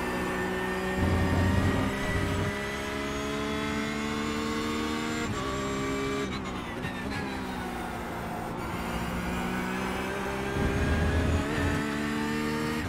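Tyres rumble over kerbs.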